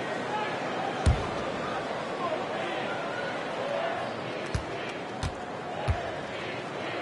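A basketball bounces on a wooden court a few times.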